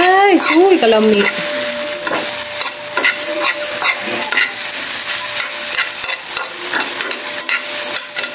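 A spatula scrapes and taps against a pan.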